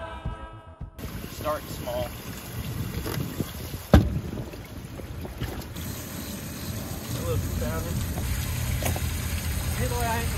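A young man talks with animation close by, outdoors in light wind.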